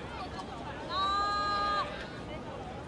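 A referee blows a whistle in a long, sharp blast.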